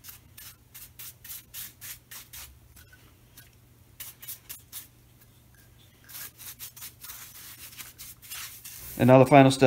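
A brush swishes in quick, repeated strokes.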